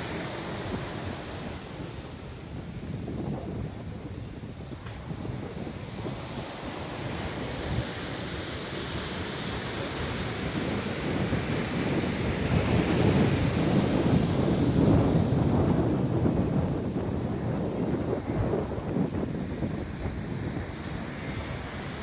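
Waves break and wash up onto a beach.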